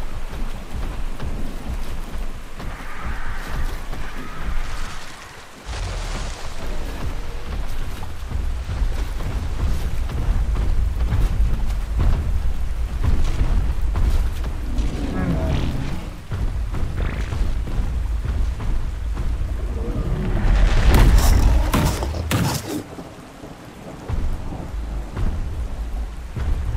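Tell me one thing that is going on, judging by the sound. A large creature's heavy footsteps thud.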